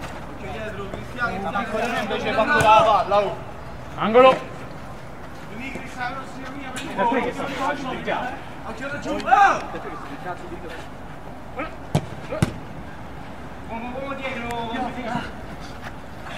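Men shout and call out to each other across an outdoor pitch.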